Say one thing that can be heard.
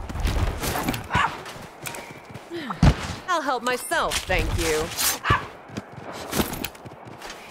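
Heavy blows land with sharp thuds and clangs.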